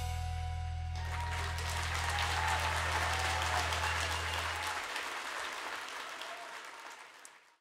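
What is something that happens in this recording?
An audience applauds in a large hall, then the clapping fades.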